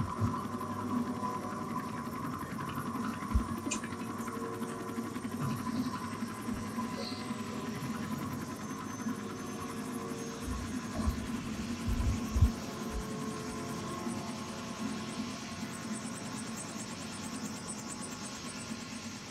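A helicopter's rotor whirs.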